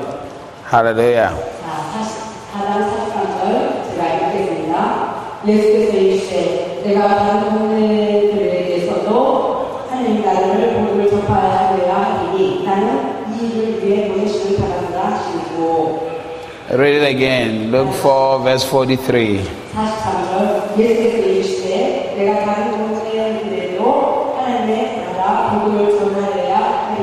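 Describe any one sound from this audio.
A woman sings softly through a microphone.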